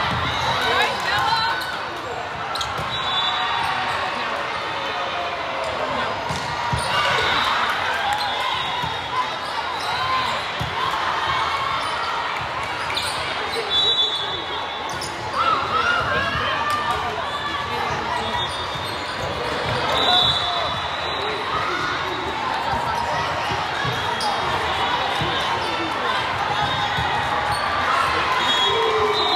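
A volleyball is struck with sharp slaps during a rally.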